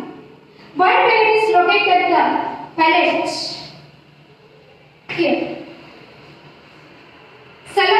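A woman speaks slowly and clearly, as if teaching.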